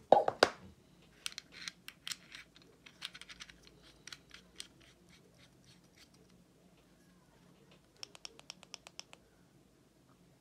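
Small metal parts click and scrape as they are screwed together.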